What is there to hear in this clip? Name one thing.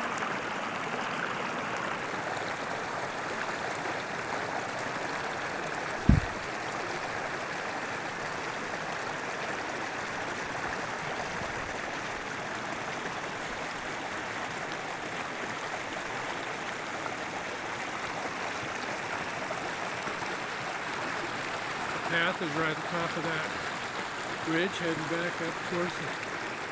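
A shallow mountain stream trickles and babbles over rocks.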